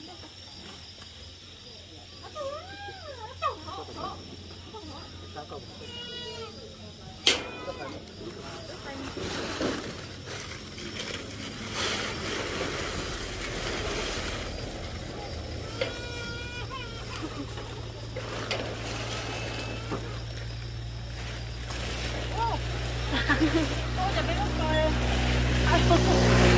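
Plastic bags rustle as they are handled.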